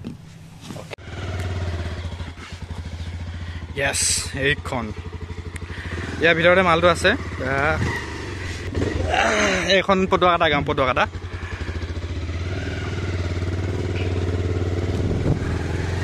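A motorcycle engine idles and runs with a steady low rumble.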